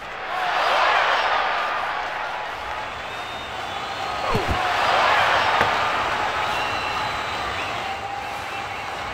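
A large crowd roars in an echoing arena, swelling and fading in waves.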